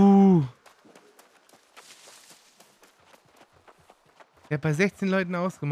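Footsteps patter along a dirt path.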